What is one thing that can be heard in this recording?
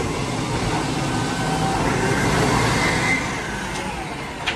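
A truck engine rumbles loudly close by as the truck drives past.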